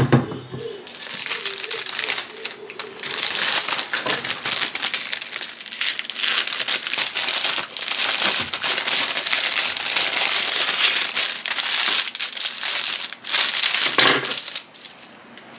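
Plastic wrapping and paper crinkle and rustle loudly up close.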